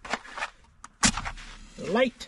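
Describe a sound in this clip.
A match strikes and flares.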